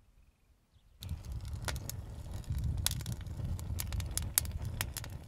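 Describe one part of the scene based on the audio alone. A fire crackles and pops inside a metal barrel.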